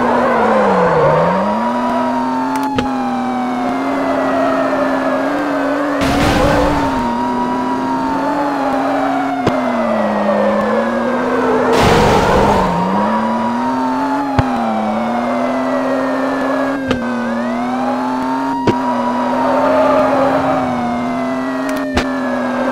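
A car engine revs up and down through its gears.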